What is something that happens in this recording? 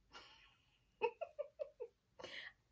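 A woman laughs briefly.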